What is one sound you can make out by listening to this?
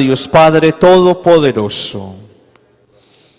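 A man sings a chant through a microphone, echoing in a large hall.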